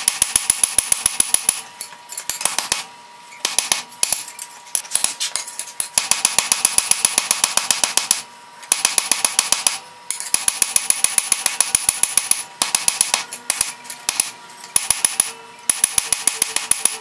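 A hammer rapidly strikes hot metal on an anvil with sharp ringing clangs.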